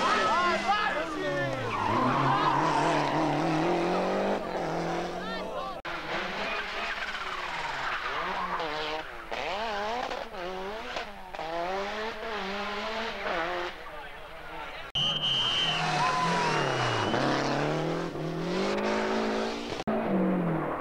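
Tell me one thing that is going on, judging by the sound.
A rally car engine revs hard, rising and falling as gears change while the car races past close by.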